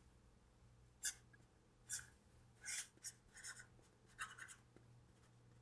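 A marker squeaks against a writing surface.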